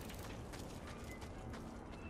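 A fire burns and crackles.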